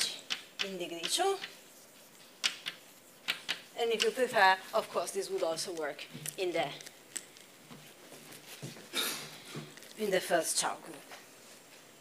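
A young woman lectures calmly through a microphone.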